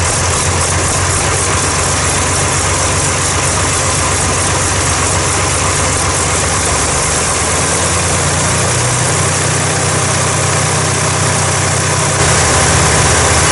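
A young man talks calmly over the engine.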